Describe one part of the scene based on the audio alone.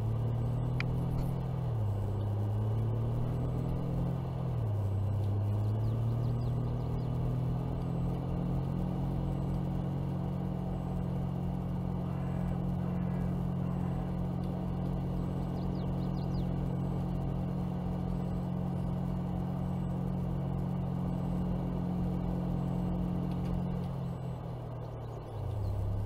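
A pickup truck engine hums loudly, revving up through the gears and then holding a steady drone.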